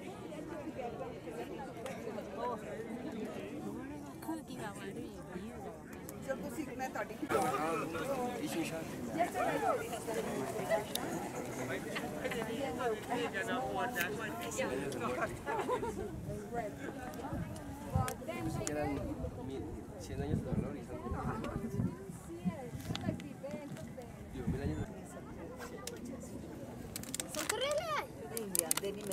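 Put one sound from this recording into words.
A crowd of men and women chatter outdoors at a distance.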